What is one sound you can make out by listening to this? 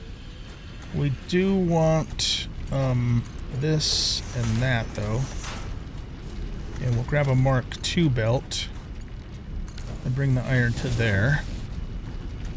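An elderly man talks calmly into a close microphone.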